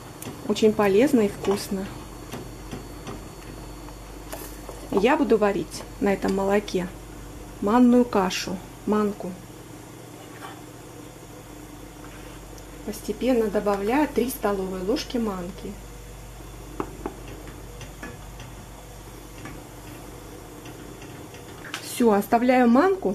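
A spoon stirs liquid in a metal pot.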